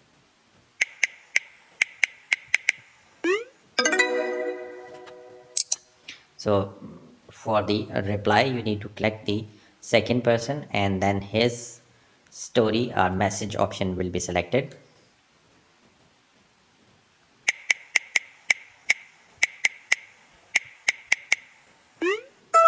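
Phone keyboard taps click in quick bursts.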